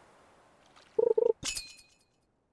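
A short bright chime rings as a fish bites.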